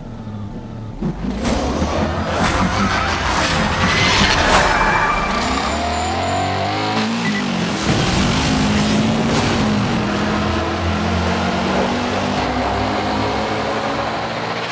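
A car engine revs loudly and roars as it speeds away.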